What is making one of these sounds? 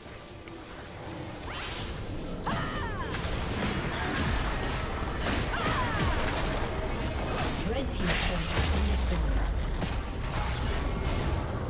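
Video game battle effects clash and zap rapidly.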